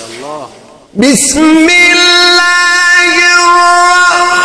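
A young man chants loudly through a microphone in long, held, wavering notes.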